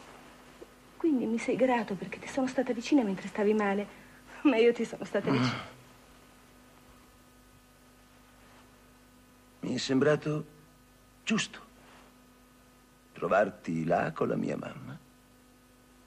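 A man speaks softly and emotionally, close by.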